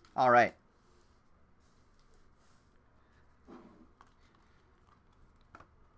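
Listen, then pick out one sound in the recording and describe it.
Trading cards slap and shuffle in hands.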